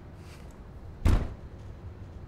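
A thump lands on a wooden counter.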